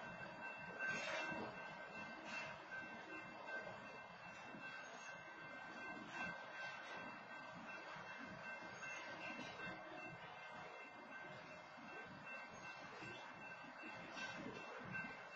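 Metal clanks sharply as a train's cars bump along.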